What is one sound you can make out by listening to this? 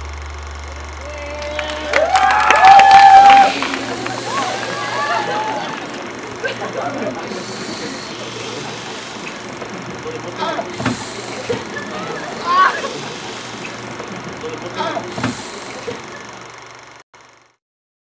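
A cinema crowd cheers and screams with excitement.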